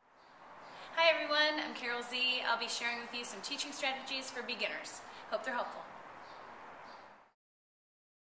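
A woman speaks calmly to the listener, close by.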